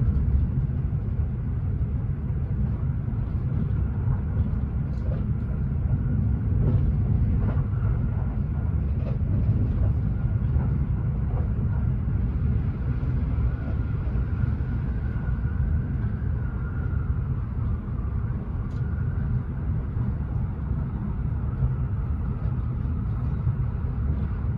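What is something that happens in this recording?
Train wheels click and rattle over the rail joints.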